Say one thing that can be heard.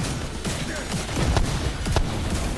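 An explosion bursts with a deep roar.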